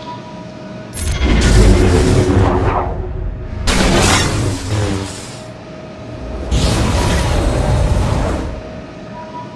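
Loud blasts and impacts burst out in a fight.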